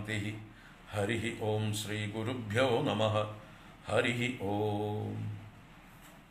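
An older man chants a prayer in a low, steady voice close to a microphone.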